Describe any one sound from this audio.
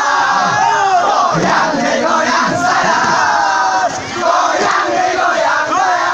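A boy shouts with excitement.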